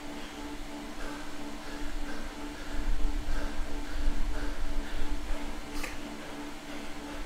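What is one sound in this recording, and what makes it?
A man breathes heavily and rhythmically close by.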